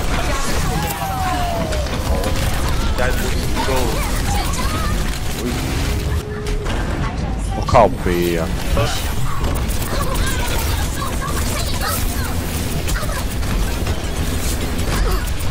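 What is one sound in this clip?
Rapid gunfire and energy blasts crackle throughout.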